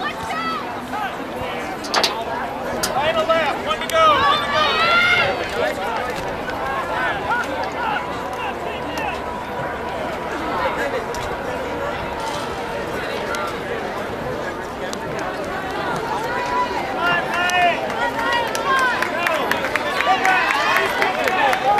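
A crowd of young people chatters and calls out outdoors.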